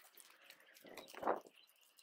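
Plant stems snap off.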